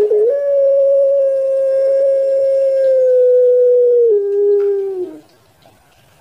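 A dove coos in a long, steady tone up close that drops lower near the end.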